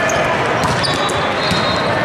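A volleyball is served with a sharp slap.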